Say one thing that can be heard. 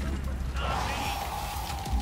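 A sword slashes with a sharp swish.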